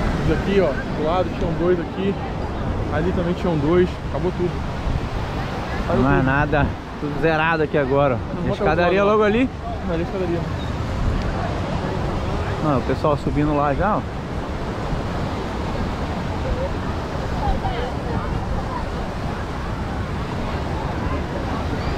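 A crowd of people chatter outdoors at a distance.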